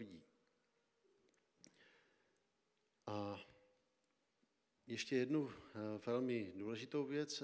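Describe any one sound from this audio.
A man speaks calmly through a microphone in a reverberant hall, with pauses.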